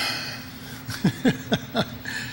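An older man chuckles into a microphone.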